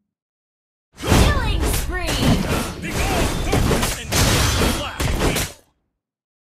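Fighting sound effects clash and whoosh in quick bursts.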